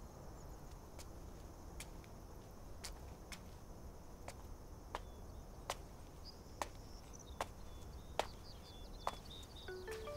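Footsteps tap slowly on a hard floor.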